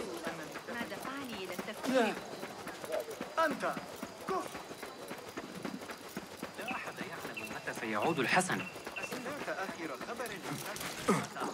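Footsteps run quickly over stone paving.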